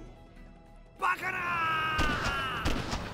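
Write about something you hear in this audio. A heavy body thuds onto the ground.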